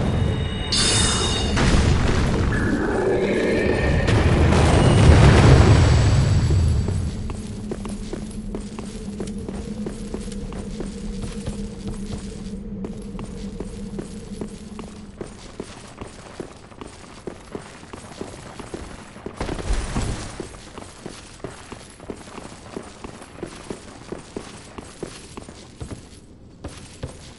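Armoured footsteps clank quickly on stone.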